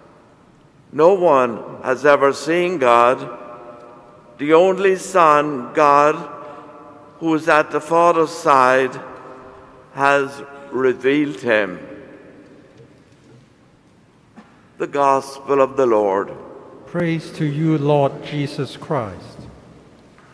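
An elderly man chants in a sung voice through a microphone, echoing in a large hall.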